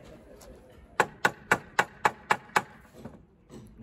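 A hammer taps sharply on wood, several times in quick succession.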